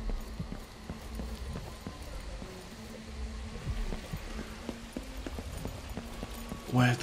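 Footsteps run quickly over stone steps.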